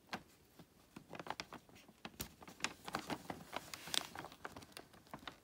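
Fingers rustle and scrape against small plastic gems.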